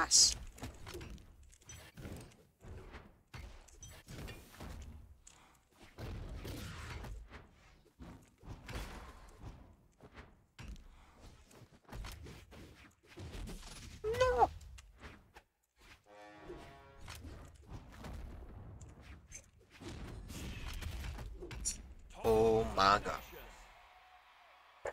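Cartoonish punches, swings and impacts thud and crack in quick succession.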